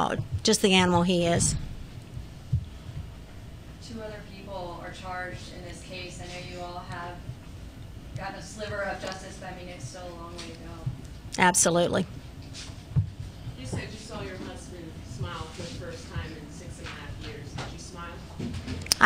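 A middle-aged woman speaks calmly into a close microphone.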